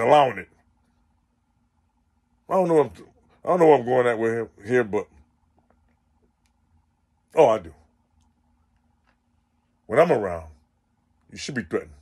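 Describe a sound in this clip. A man speaks close to the microphone in short, animated bursts with pauses.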